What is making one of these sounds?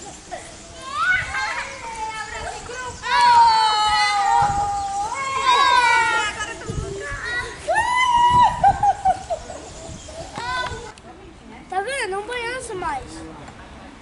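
Young children shout and squeal playfully outdoors.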